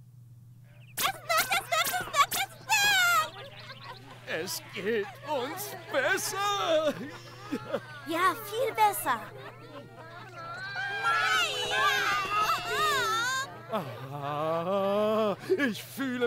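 High cartoonish voices cheer excitedly together.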